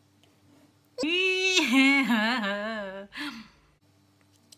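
A young woman speaks in a drawn-out, sing-song voice close by.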